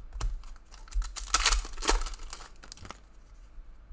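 A foil trading card pack crinkles as it is torn open.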